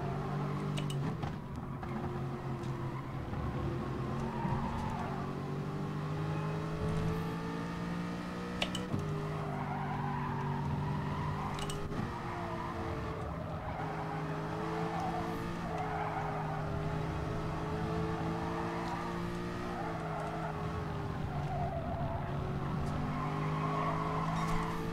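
A racing car engine roars steadily, its pitch rising and dropping with gear changes.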